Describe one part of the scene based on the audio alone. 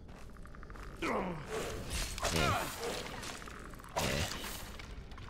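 A sword strikes with a sharp clang.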